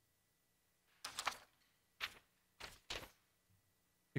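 Paper rustles as a man handles a sheet.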